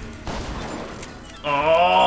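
A shotgun is reloaded with metallic clicks.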